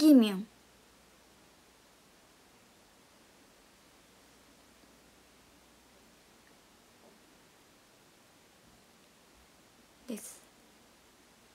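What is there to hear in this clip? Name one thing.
A young woman speaks briefly and softly close to the microphone.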